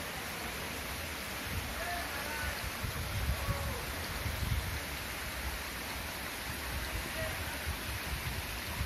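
Water from a small waterfall splashes and trickles over rocks.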